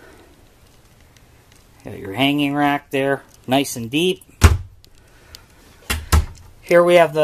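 A wooden cabinet door opens and clicks shut.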